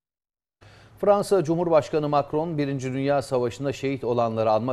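A middle-aged man speaks calmly and clearly into a microphone, like a news presenter.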